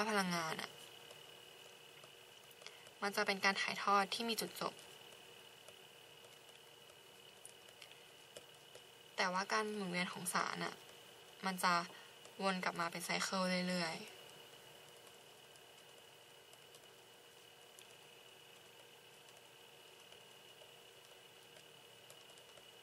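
A marker pen squeaks softly across paper.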